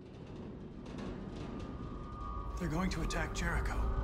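A young man speaks urgently, close by.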